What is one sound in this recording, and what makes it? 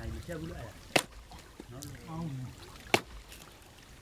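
An axe chops into a log with sharp thuds.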